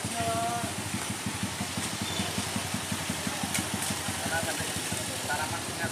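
A motorbike engine idles nearby with a steady, rhythmic putter.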